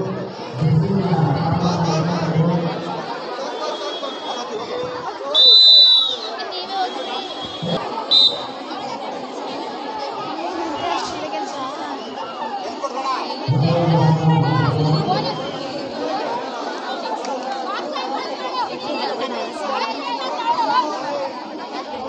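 A large crowd of young people chatters and cheers outdoors.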